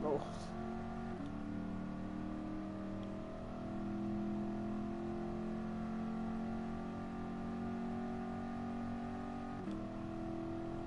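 A car engine roars steadily, its pitch climbing as it speeds up.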